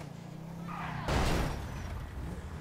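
A car crashes into another car with a loud bang.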